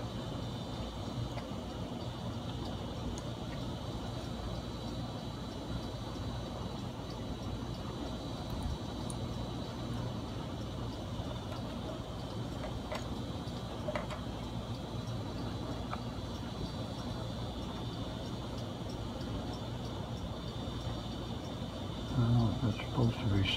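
Small wires and metal parts tick and click faintly as hands work on them.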